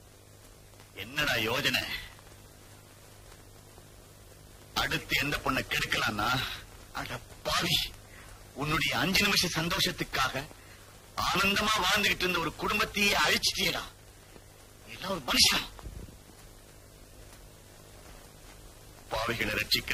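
A second man answers calmly nearby.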